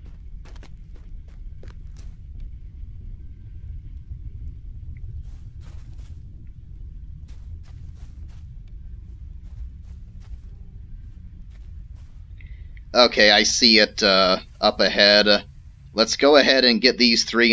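Footsteps crunch softly on dry ground.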